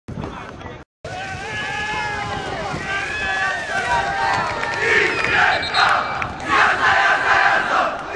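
A crowd cheers and whistles loudly from a distance, outdoors.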